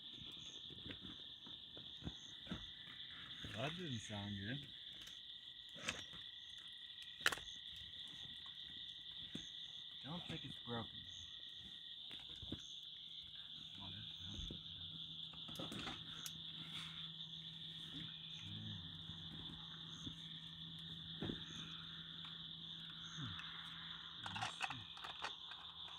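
A wood fire crackles and pops close by.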